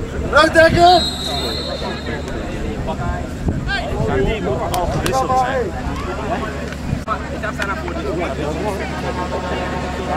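Men shout and call out to each other across an open field.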